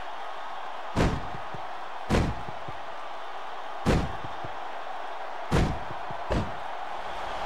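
A heavy hammer strikes a body with loud thuds.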